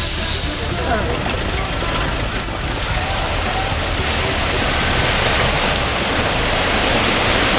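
Water splashes around a car wading through a river.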